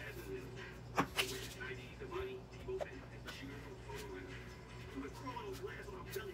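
Hands brush and rustle through hair close by.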